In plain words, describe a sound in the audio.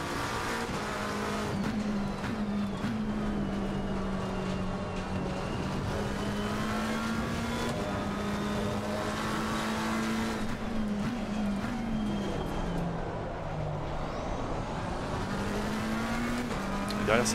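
A race car engine roars and whines, rising and falling as it shifts gears.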